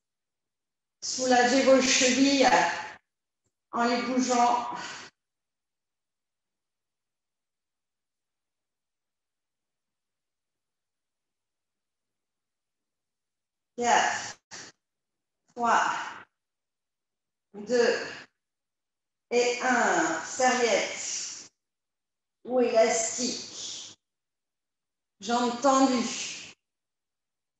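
A woman talks calmly, giving instructions, close to a microphone.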